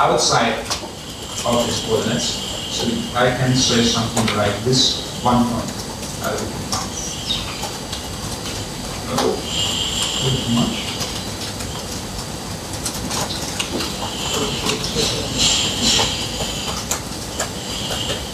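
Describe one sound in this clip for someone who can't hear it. Keys click on a laptop keyboard.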